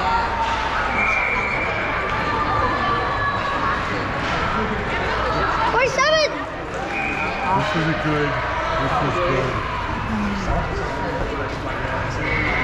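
Skates scrape and carve across the ice in a large echoing rink.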